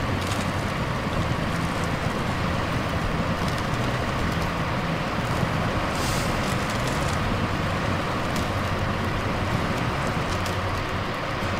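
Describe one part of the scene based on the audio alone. Tyres squelch through mud.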